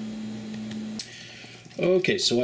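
A pot of soup simmers and bubbles softly.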